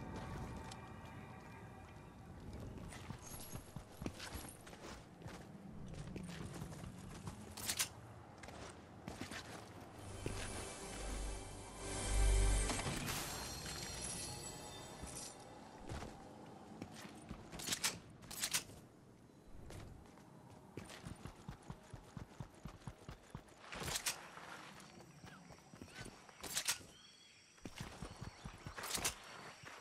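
Footsteps patter quickly over stone and grass.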